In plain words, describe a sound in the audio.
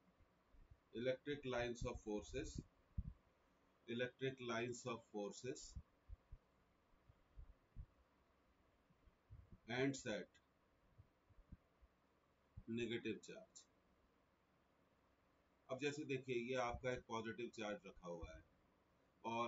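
An older man speaks calmly into a microphone, explaining in short phrases with pauses.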